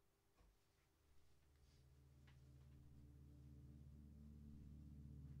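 A low synthesizer drone slowly swells in.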